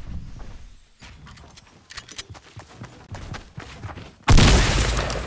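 Wooden walls snap into place in quick clicks.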